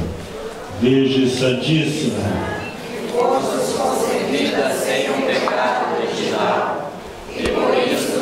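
A middle-aged man speaks steadily into a microphone, heard through loudspeakers in an echoing room.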